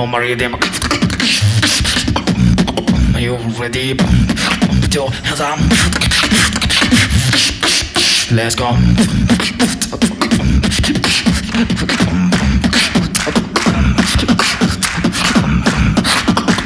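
A young man beatboxes rapidly into a microphone through loudspeakers in an echoing hall.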